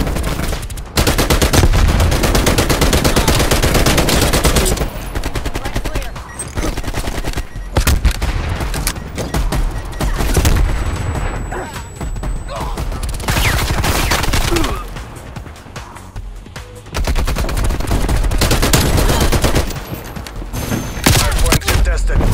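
Automatic gunfire rattles in rapid bursts.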